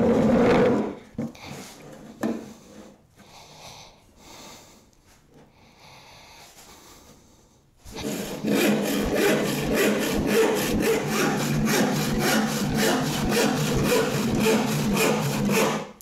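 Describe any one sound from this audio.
A hand saw rasps back and forth through wood in quick, steady strokes.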